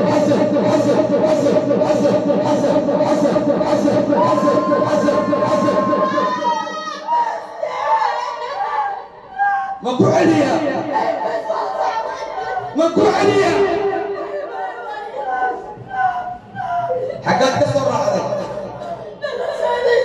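A man speaks with animation into a microphone, his voice coming through a loudspeaker.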